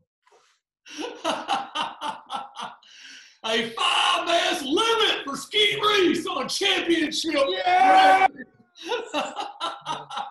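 Men laugh heartily over an online call.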